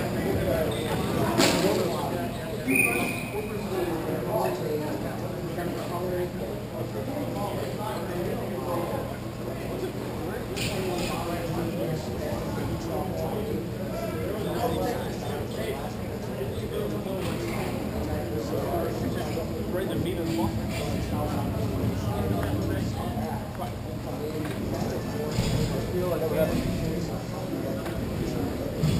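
Young players shout to each other across the rink.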